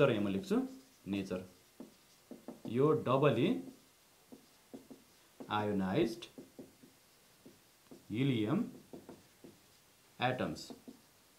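A man speaks calmly and slowly, close by, in short phrases.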